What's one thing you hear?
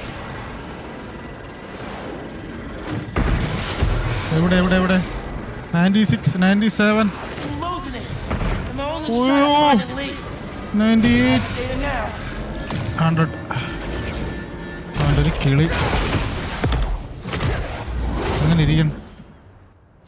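Loud game effects whoosh and rumble.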